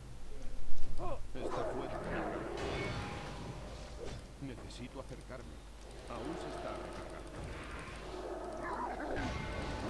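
Weapons strike and thud in a fight.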